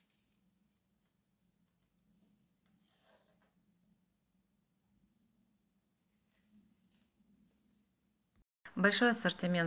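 Fabric rustles softly as hands handle it.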